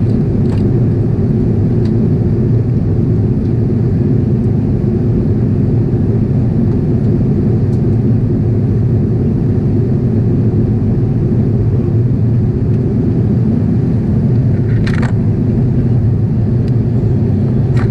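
Jet engines roar in a steady low drone inside an airliner cabin.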